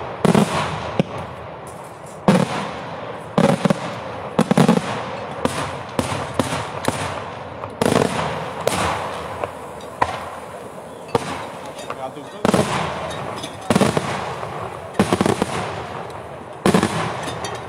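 Fireworks bang loudly overhead in rapid bursts, echoing outdoors.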